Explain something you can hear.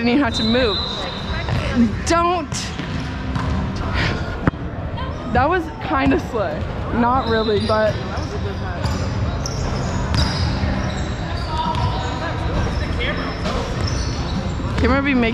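Young people chatter and call out in a large echoing hall.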